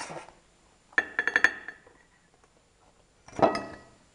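A metal pan knocks and clatters against a plate.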